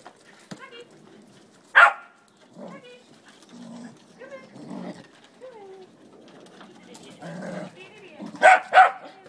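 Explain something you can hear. Small dogs growl while tugging at a ball.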